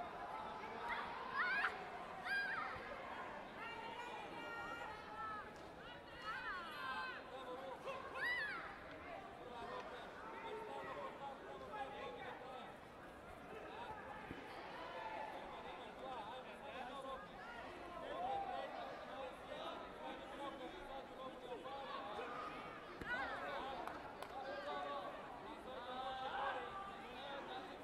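Spectators shout encouragement loudly.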